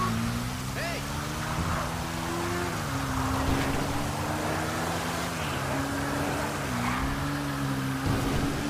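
Rain hisses steadily outdoors.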